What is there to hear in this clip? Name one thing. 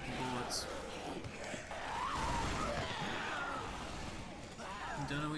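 Bare feet slap quickly on a hard floor.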